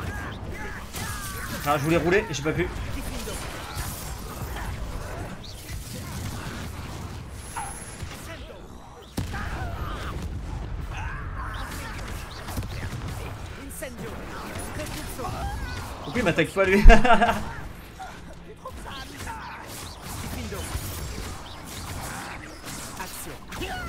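Spell blasts burst and crackle in a fight.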